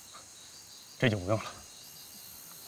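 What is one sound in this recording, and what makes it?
A man speaks briefly in a low, calm voice close by.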